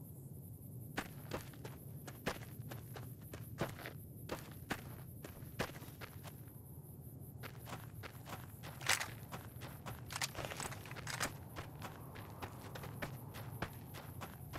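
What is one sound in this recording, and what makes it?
Footsteps crunch through dry grass and dirt.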